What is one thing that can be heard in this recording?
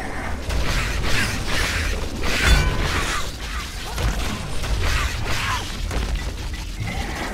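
Electric magic crackles and zaps in short bursts.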